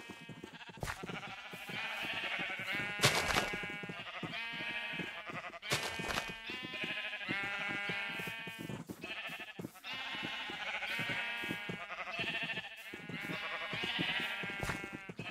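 Footsteps pad across grass.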